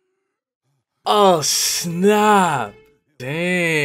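A young man speaks with amusement into a close microphone.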